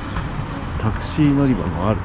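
Traffic hums on a nearby road.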